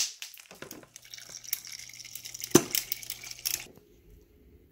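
Ice cubes rattle and clatter from a fridge dispenser into a mug.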